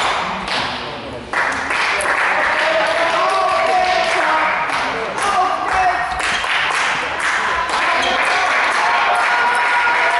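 A table tennis ball clicks back and forth between paddles and the table, echoing in a large hall.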